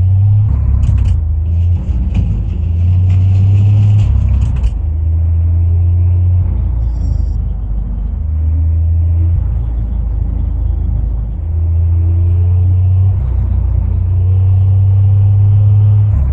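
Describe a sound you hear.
A truck's diesel engine drones steadily, rising and falling as it shifts gears.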